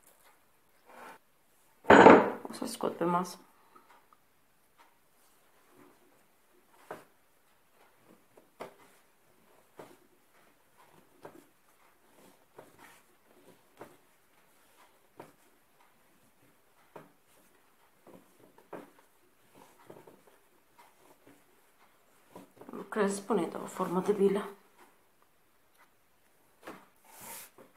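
Hands knead sticky dough with soft, quiet slaps and squelches.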